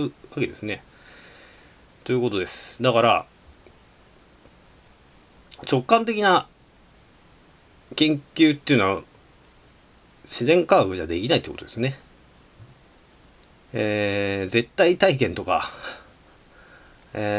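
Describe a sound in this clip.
A woman speaks slowly and calmly in short phrases, with pauses between them.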